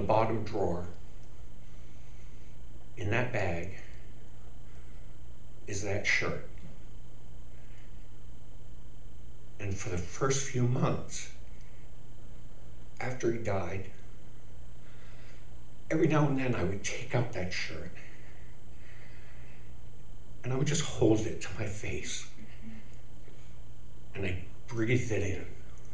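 An elderly man speaks slowly and dramatically into a microphone, in short bursts with long pauses.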